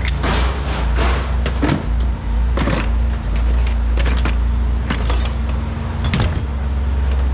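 Metal parts clatter and clunk as a man rummages through a bin.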